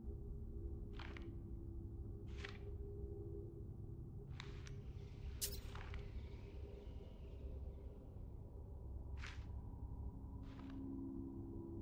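Short soft clicks sound as a menu selection moves between items.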